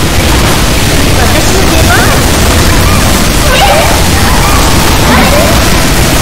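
Electric zaps crackle in a game.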